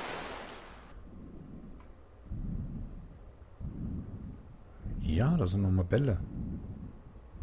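Muffled water rumbles deep and low underwater.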